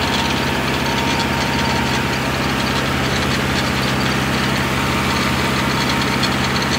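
A tractor engine drones steadily up close.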